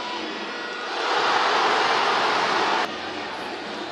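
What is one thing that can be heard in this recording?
A crowd roars loudly as a goal is scored.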